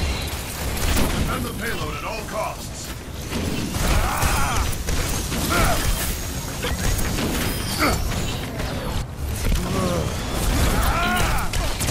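Laser beams fire in rapid, sizzling bursts.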